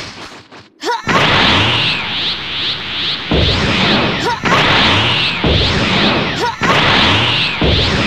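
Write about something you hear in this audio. A powering-up aura roars and crackles steadily.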